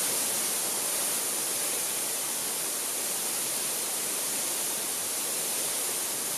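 Rain patters steadily on leaves.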